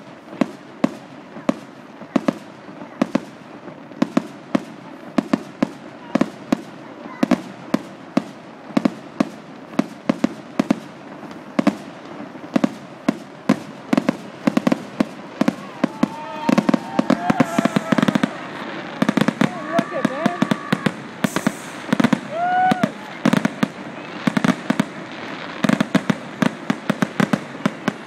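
Fireworks bang and crackle in rapid bursts nearby.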